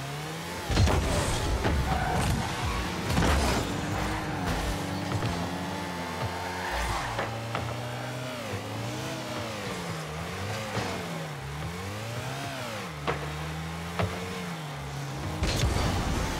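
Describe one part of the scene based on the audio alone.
A game car's engine hums and revs, rising and falling in pitch.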